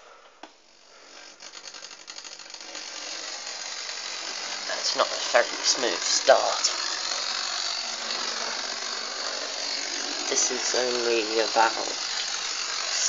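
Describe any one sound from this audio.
A model train's small electric motor whirs and hums steadily.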